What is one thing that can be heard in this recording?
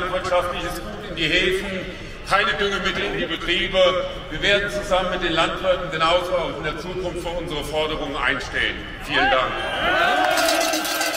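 A man speaks through loudspeakers outdoors.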